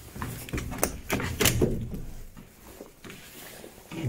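A metal door creaks open.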